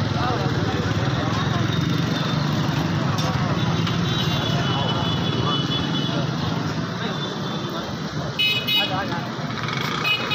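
A crowd of men chatters loudly outdoors.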